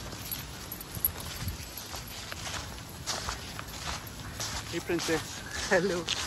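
Dogs run through dry leaves, rustling and crunching them.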